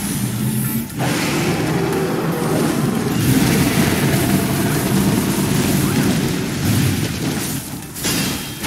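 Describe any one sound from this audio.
Electric crackling and rapid blasts of combat effects ring out.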